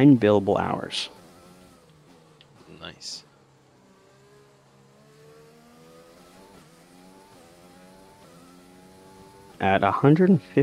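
A racing car engine whines, rising in pitch through the gears.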